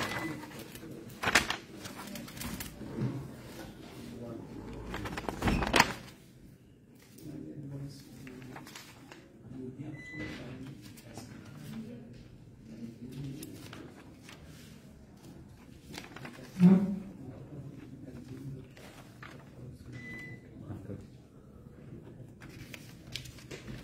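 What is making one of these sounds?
Paper sheets rustle as pages are turned and handled.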